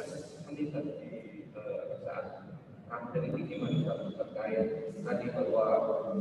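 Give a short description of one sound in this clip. A man speaks steadily through an online call.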